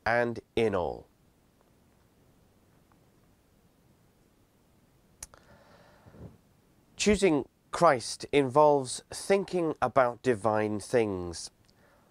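A man speaks calmly and close to a microphone, with pauses.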